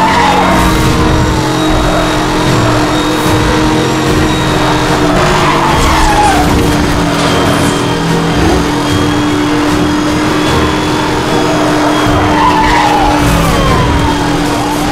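Tyres hiss on the road as a car races along.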